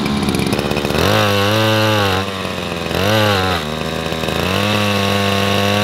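A small petrol engine revs up and settles back down several times.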